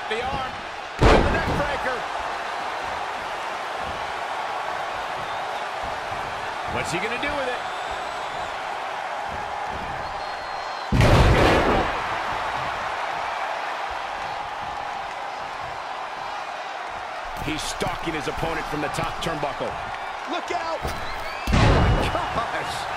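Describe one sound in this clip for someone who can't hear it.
A body slams heavily onto a wrestling ring mat several times.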